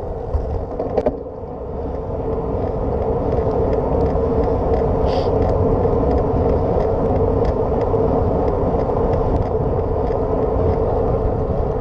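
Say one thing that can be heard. Wind rumbles steadily.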